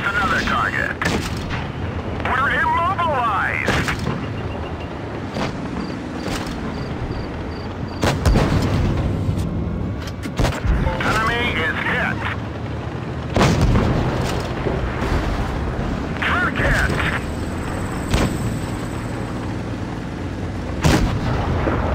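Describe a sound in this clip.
Tank cannons fire with loud booming blasts.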